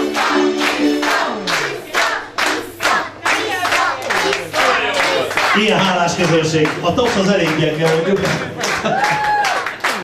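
A crowd of guests sings loudly.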